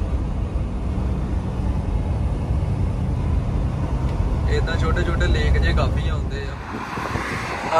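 A vehicle engine rumbles steadily from inside the cab as it drives along.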